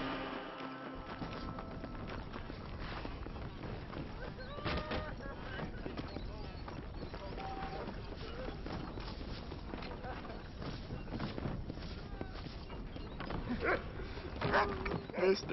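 Footsteps crunch on dirt at a quick pace.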